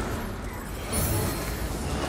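A magic blast crackles and bursts.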